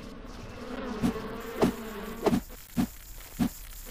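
A sword swishes and strikes.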